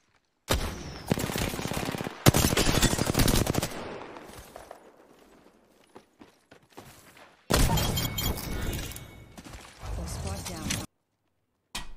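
Rapid gunfire bursts loudly.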